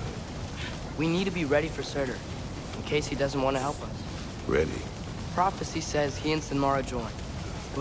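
A boy speaks calmly.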